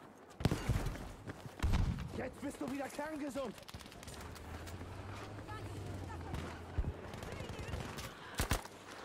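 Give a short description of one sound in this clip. Gunshots fire in sharp bursts.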